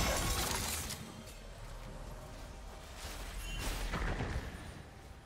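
Game spell effects whoosh and crackle in short bursts.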